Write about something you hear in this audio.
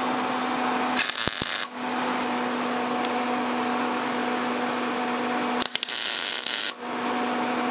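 A welding torch crackles and sizzles in short bursts.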